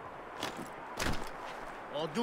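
Boots thud as they land on a tin roof.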